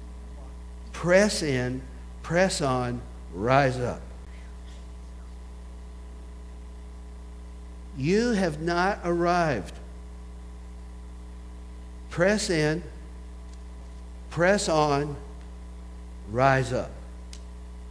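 A middle-aged man preaches with animation through a microphone, in short bursts with pauses.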